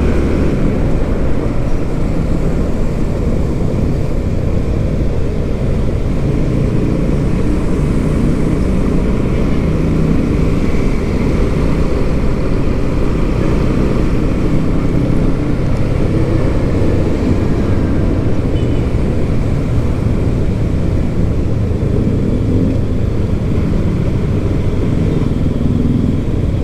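An engine hums steadily as a vehicle drives along.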